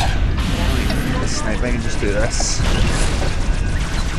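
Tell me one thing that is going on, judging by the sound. An energy blade swings with a loud whoosh.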